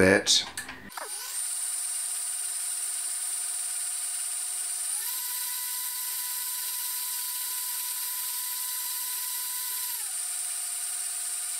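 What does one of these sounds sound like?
A blender motor whirs with a steady high whine, stepping up in pitch and then back down.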